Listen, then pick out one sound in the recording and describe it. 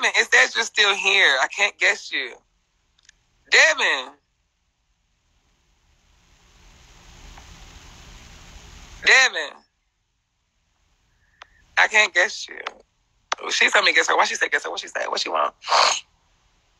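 A young man talks casually, close to a phone microphone, in short bursts.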